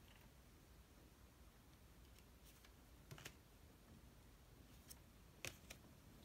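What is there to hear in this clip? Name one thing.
Cards are laid down softly on a table with light taps and slides.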